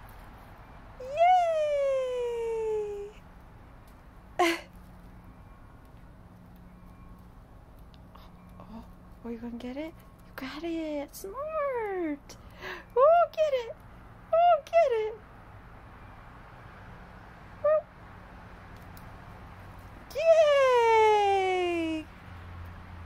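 A kitten meows loudly, again and again.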